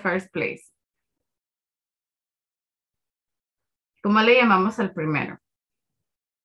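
A woman speaks clearly over an online call, in short phrases.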